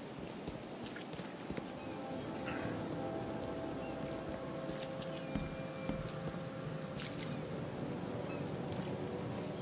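Footsteps walk on hard ground outdoors.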